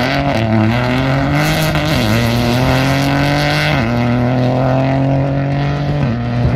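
A rally car engine roars at high revs, dropping in pitch with each gear change.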